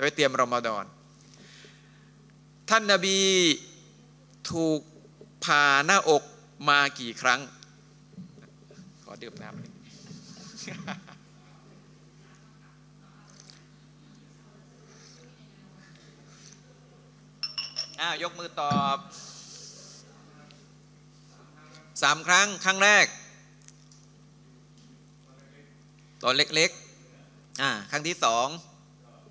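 A middle-aged man speaks with animation into a microphone, pausing between phrases.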